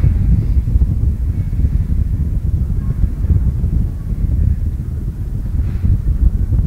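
A rocket engine roars with a deep, steady, rumbling thunder.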